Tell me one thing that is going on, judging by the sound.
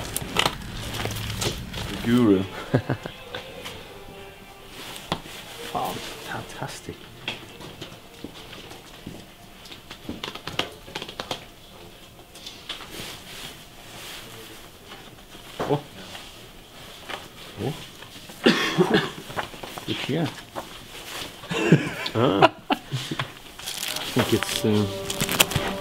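Record sleeves clack and rustle as a man flips through them.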